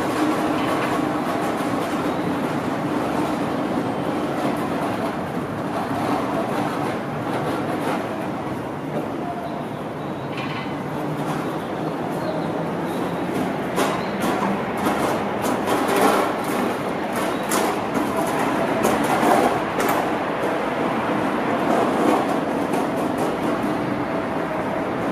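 A train rumbles slowly closer along the tracks.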